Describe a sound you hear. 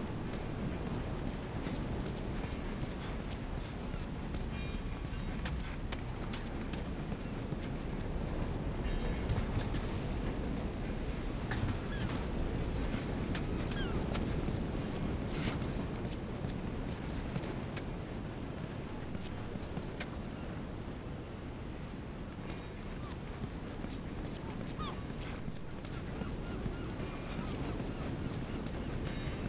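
Footsteps walk steadily over a hard floor.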